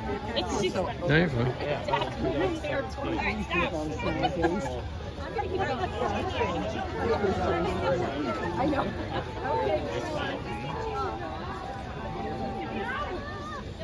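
A crowd of men and women chatter nearby, with many overlapping voices.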